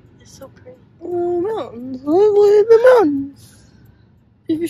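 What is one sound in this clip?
A young woman talks close by inside a car.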